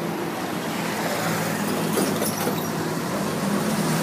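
A motorbike engine buzzes past.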